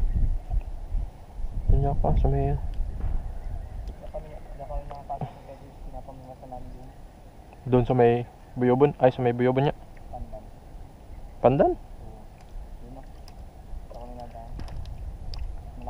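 Water laps gently against a small boat's hull.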